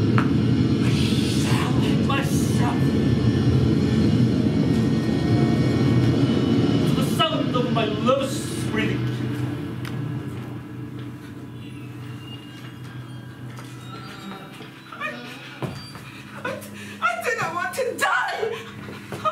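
A man speaks out loudly and dramatically in a large room.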